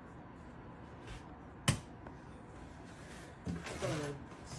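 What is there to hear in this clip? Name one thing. A cabinet door knocks open.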